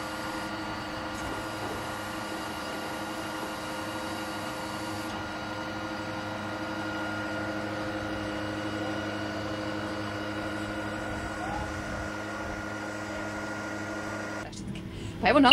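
A heavy machine's engine hums steadily.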